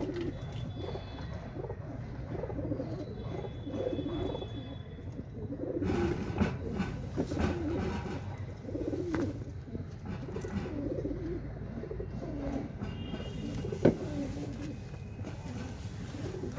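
Many pigeons coo softly and steadily close by.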